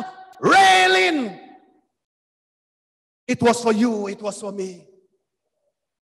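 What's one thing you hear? A man preaches with feeling into a microphone, in bursts with pauses.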